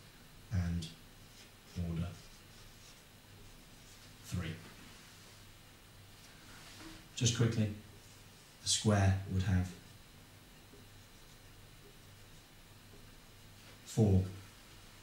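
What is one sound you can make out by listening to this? A young man speaks in short phrases, as if explaining.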